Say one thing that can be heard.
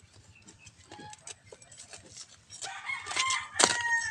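Fingers scrape and crumble dry soil.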